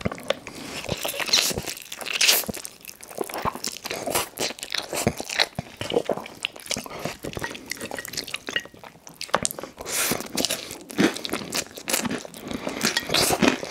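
A man slurps noodles loudly and close up.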